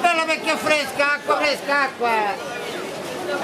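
A middle-aged man calls out loudly nearby.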